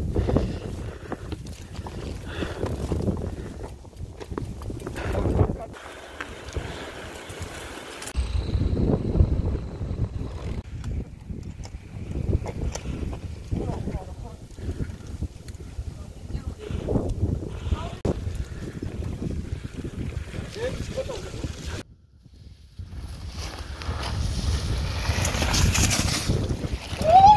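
Bicycle tyres rattle and bump over a rough trail.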